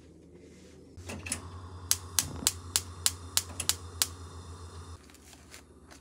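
A gas burner hisses steadily under a pot.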